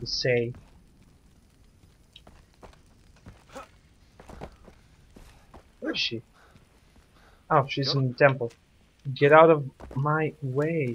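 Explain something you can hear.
Torch fires crackle softly.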